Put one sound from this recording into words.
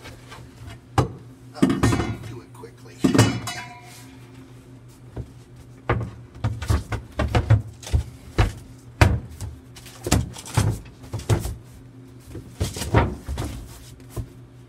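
A tabletop and cushions thump as they are set down.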